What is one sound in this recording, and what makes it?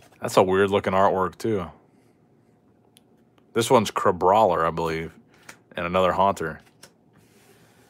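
Playing cards slide and tap against each other.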